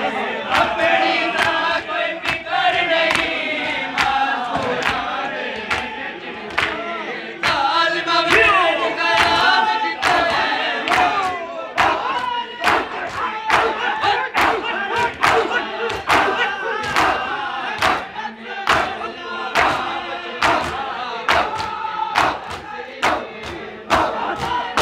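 Men slap their bare chests in a steady, rhythmic beat.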